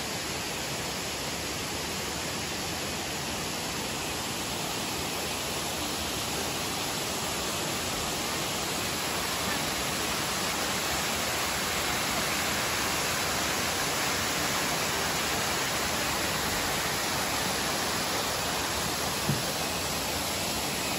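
Waterfalls rush and roar steadily, growing louder.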